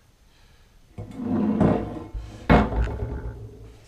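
A metal bike frame knocks against a wooden table.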